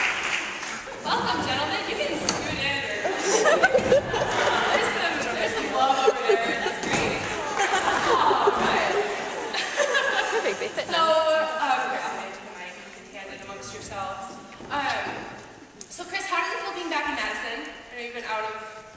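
A man talks with animation in an echoing hall.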